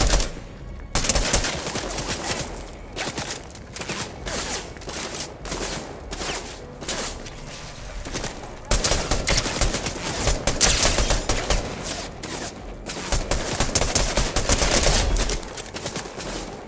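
Gunshots fire in rapid, loud bursts.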